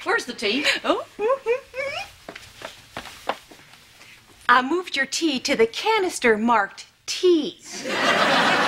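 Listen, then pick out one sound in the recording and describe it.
A woman speaks loudly and with animation, close by.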